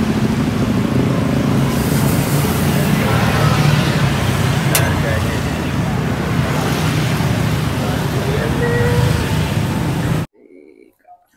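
Street traffic rumbles steadily outdoors, with motorbikes passing.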